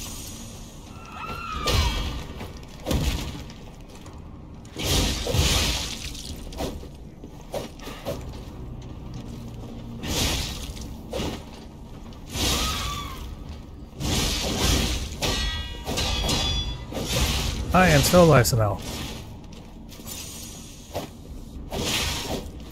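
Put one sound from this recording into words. Metal blades clash and scrape in a fast sword fight.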